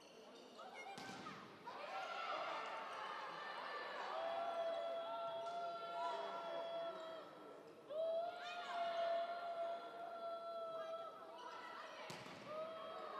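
A volleyball is struck hard with a sharp smack, echoing in a large hall.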